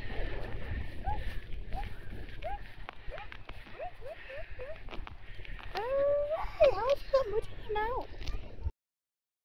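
A young child babbles and squeals in short high bursts.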